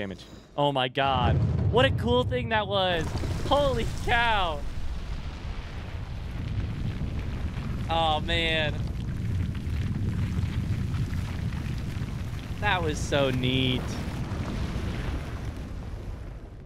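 A deep rumble rolls on as a huge stone tower rises out of the ground.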